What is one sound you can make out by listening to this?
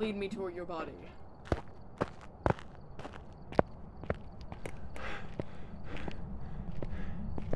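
Footsteps tread steadily on a hard path.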